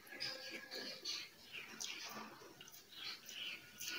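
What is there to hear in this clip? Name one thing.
A young woman chews and crunches fresh leaves.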